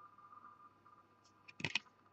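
A trading card is slid and flicked between fingers.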